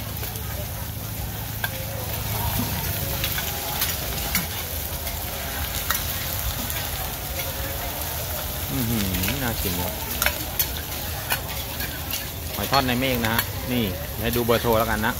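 Batter sizzles and crackles on a hot griddle.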